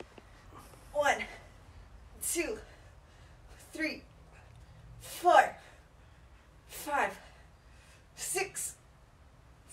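A young woman grunts with effort in short bursts.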